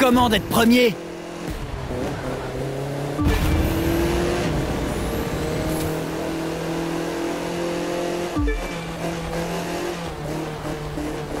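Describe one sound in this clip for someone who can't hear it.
A racing car engine roars at high speed, its pitch dropping briefly at each gear shift.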